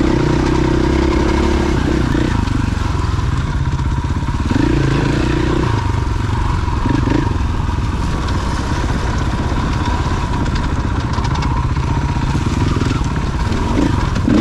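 Tyres crunch over loose gravel and rocks.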